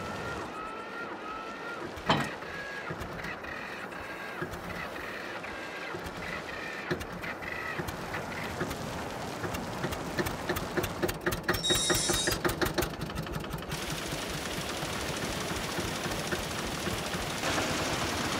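A small tractor engine chugs steadily.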